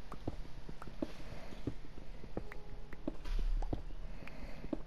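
Stone blocks crumble and break apart.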